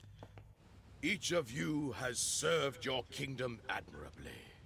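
An elderly man speaks solemnly.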